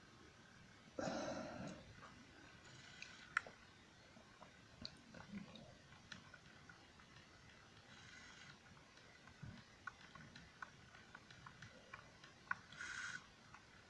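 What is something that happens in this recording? Game sound effects play from a small console speaker.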